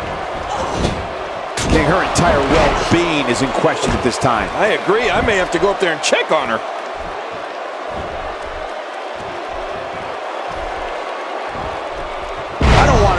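A crowd cheers steadily in a large arena.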